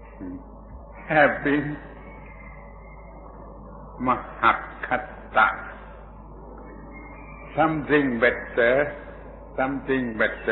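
An elderly man speaks calmly in short phrases.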